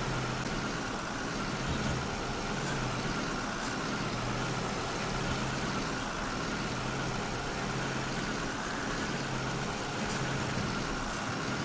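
A truck engine rumbles steadily as it drives slowly.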